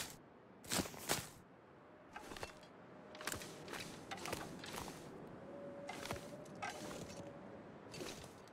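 Footsteps crunch on snow and ice.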